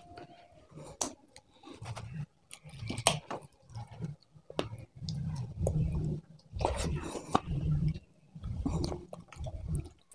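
A man chews loudly and smacks his lips close by.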